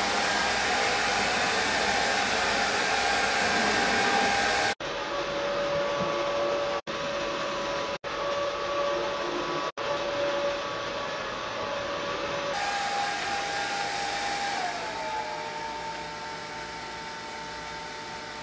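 A low-noise hair dryer blows air on hair with a steady rushing hum and a faint whine.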